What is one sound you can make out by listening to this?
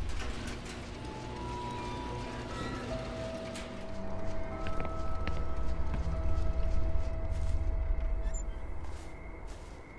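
A metal roller door rattles and rumbles as it rolls open.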